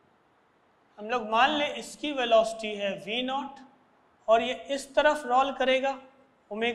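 A man explains calmly, speaking close to a microphone.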